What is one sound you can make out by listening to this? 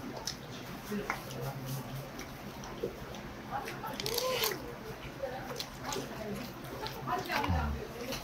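A metal spoon scrapes through food.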